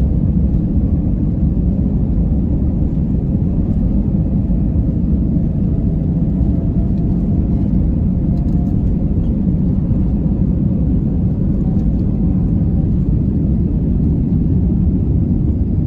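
Wheels rumble and thud over a runway.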